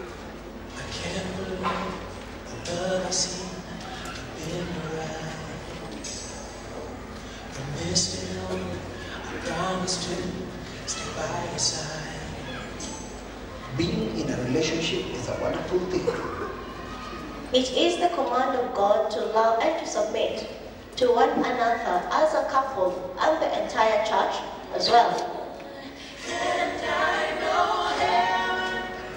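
Voices from a film play over loudspeakers in a large, echoing hall.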